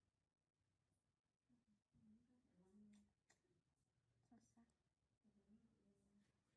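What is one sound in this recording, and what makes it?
A thin metal tool scrapes softly against skin.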